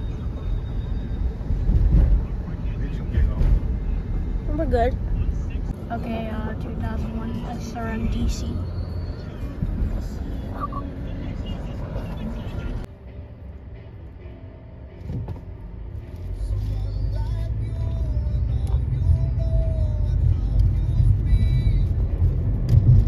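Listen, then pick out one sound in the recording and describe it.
A car engine rumbles low while driving.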